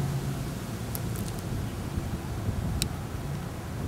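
A wooden stick thumps against a soft figure on the ground.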